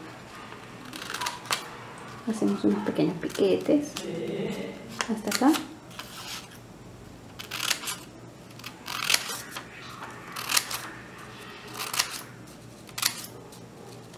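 Scissors snip through paper and fabric.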